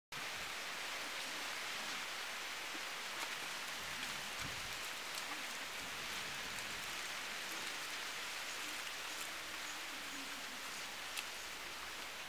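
Leaves snap softly as a woman plucks them by hand.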